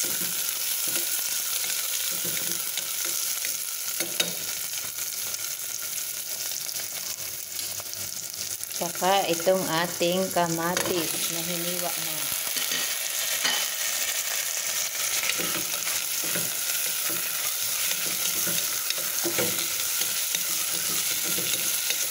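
A wooden spoon scrapes and stirs in a metal pot.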